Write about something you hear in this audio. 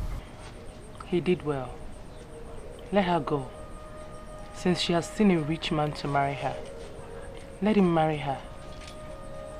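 A young woman speaks in short, troubled phrases nearby.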